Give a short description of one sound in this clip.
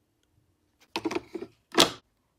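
A coffee machine lid clicks open.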